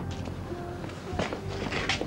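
A young woman answers softly.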